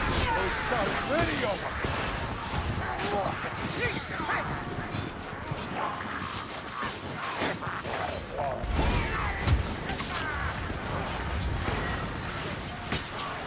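Creatures screech and snarl.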